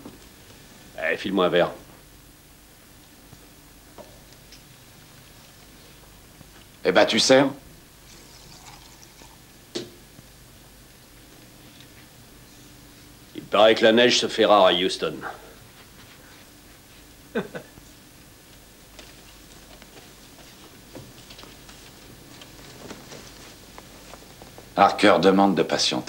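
A man speaks loudly in short bursts, with long pauses between.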